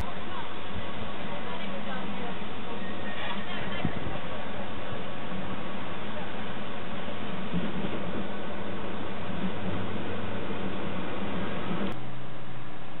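A diesel train engine idles nearby with a steady low rumble.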